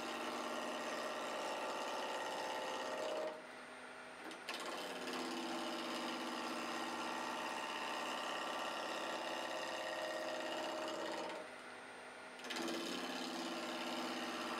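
A chisel scrapes and cuts into spinning wood.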